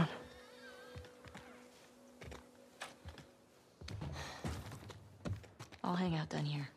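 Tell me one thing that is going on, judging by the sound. Footsteps tread slowly across a wooden floor.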